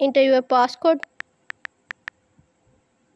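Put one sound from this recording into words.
Short keypad clicks tick quickly one after another.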